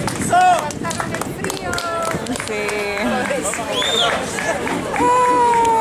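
A crowd cheers and whistles outdoors.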